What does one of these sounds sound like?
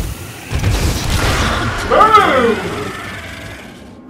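A creature screeches and shrieks.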